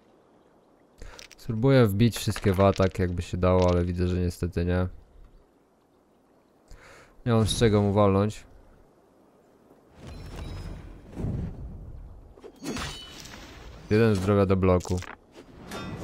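A young man talks with animation close to a headset microphone.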